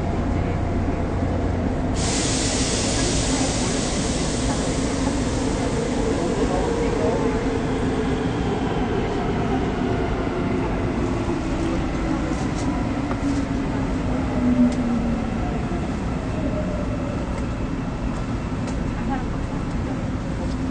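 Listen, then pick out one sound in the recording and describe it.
A train rumbles along with a whining motor that slowly drops in pitch.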